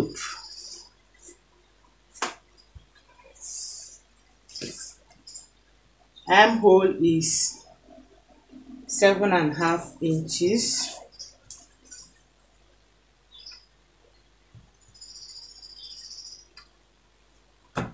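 Fabric rustles and slides on a table.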